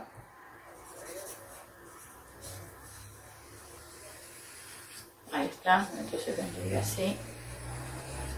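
A marker squeaks across paper.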